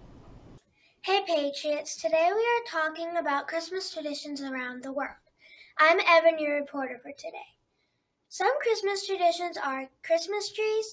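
A young girl speaks clearly and steadily.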